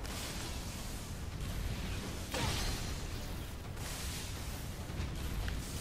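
Gas hisses in loud bursts.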